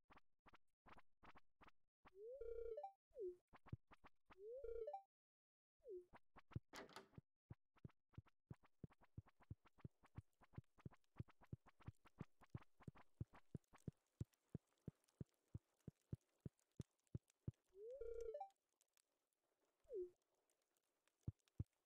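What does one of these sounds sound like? Quick, light footsteps tap steadily on a wooden floor.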